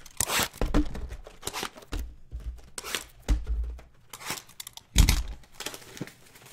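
Plastic-wrapped packs rustle and clatter as they are stacked.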